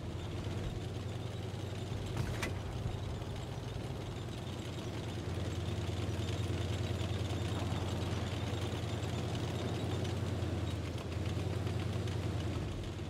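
A tank engine rumbles steadily, growing louder as the tank speeds up.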